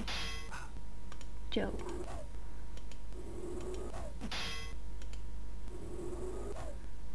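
Laser weapons zap and crackle in short bursts.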